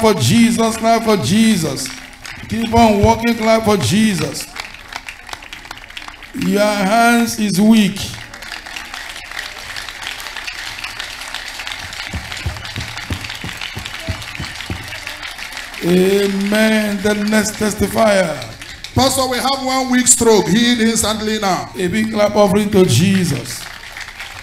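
A crowd of men and women sings loudly in short bursts.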